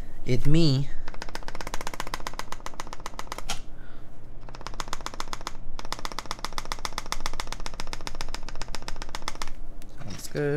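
Keyboard keys clatter rapidly under fast typing.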